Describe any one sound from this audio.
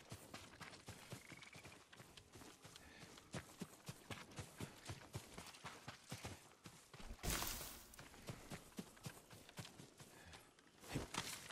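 Footsteps rustle through dense leaves and undergrowth.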